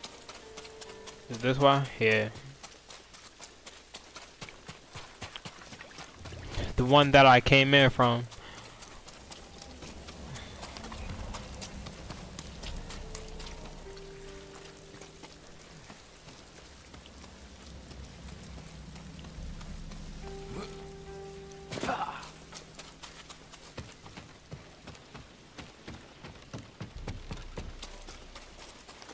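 Footsteps patter quickly over grass, stone and wooden boards.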